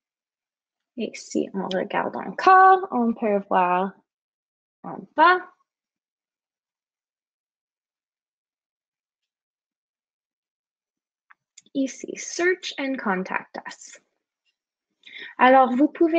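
A young woman talks calmly into a microphone, in short bursts with pauses.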